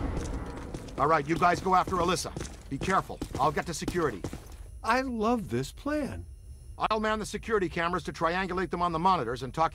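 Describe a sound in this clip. A man speaks firmly.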